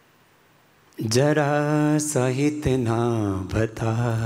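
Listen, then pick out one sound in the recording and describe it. A middle-aged man chants in a long, drawn-out voice into a microphone.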